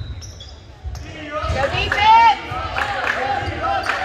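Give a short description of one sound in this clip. Spectators in a gym shout and cheer with echo.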